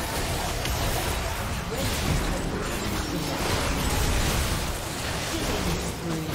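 Game spells and weapon strikes crackle and clash in a fast fight.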